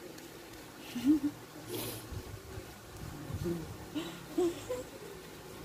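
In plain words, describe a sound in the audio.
A young woman laughs briefly close by.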